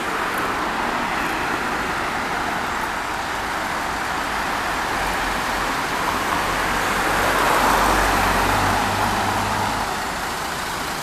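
A car drives past close by on a street.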